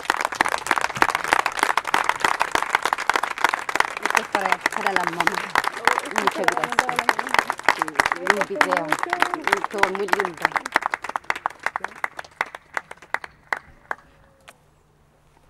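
A small crowd claps outdoors.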